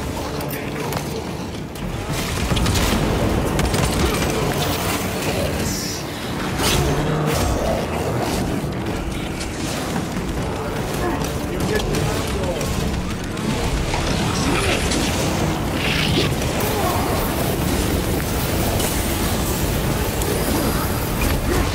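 Gunfire and explosions boom in a fast, heavy fight.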